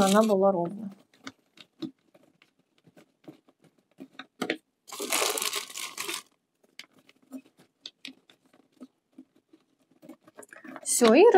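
Plastic rustles as a plant is handled in its pot.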